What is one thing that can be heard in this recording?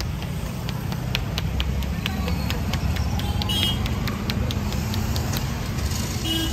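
Cupped hands slap rapidly on a head in a quick rhythm.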